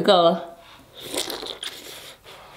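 A young woman bites and chews food wetly close to a microphone.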